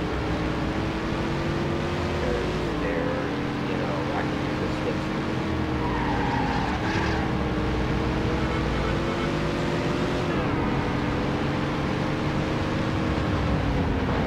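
A car engine roars steadily at high revs, shifting gears now and then.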